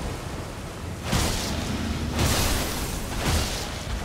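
A rushing magical blast whooshes loudly.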